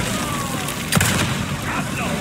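A barrel explodes with a loud boom.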